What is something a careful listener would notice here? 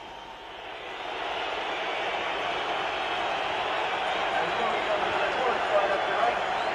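A large crowd roars and cheers loudly outdoors.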